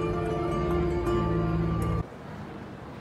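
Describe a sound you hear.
A street musician plays a tune on a stringed instrument outdoors.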